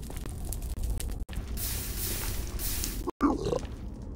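A fire crackles and hisses.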